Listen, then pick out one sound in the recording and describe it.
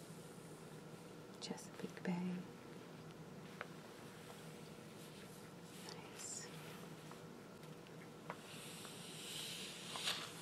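Fingertips brush and rub across a glossy magazine page.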